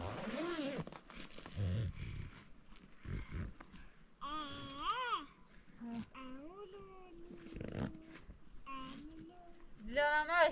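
A small child calls out and babbles in a high voice nearby.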